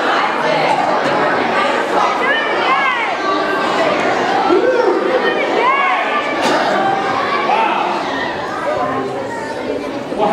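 A man speaks animatedly through a microphone in a large echoing room.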